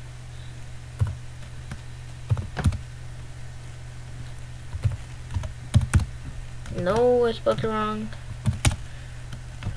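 Keys click on a computer keyboard as someone types.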